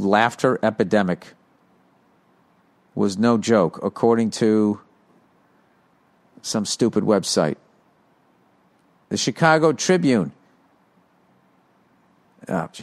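A man speaks in short bursts with pauses between them, close to a microphone.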